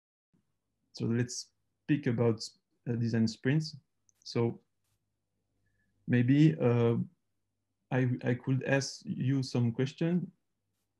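A man speaks calmly over an online call, in a different voice.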